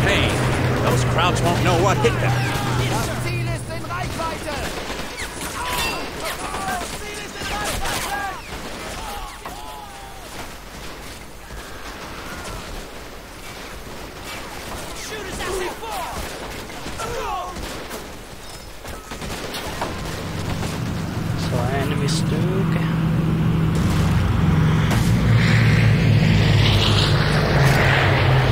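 Gunfire crackles in short bursts.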